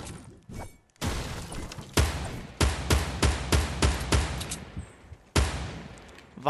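Rifle shots crack loudly, one after another, each with a short echo.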